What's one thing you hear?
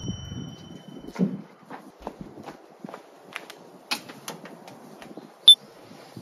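Footsteps tread on concrete.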